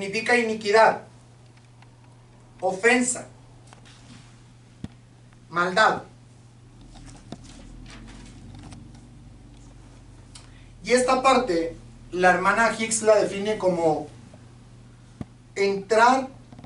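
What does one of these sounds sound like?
A man speaks calmly in short phrases, with pauses between them.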